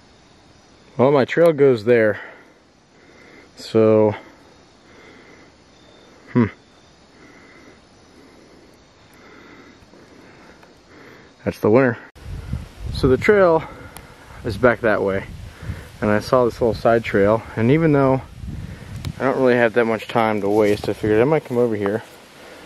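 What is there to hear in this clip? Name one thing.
A man speaks calmly close by, in short bursts.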